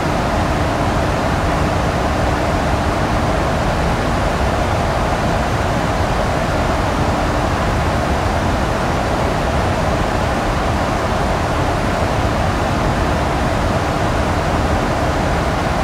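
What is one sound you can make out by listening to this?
Jet engines roar steadily with a constant rush of air.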